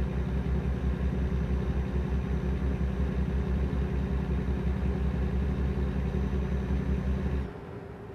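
A truck engine drones steadily at low pitch, then cuts out.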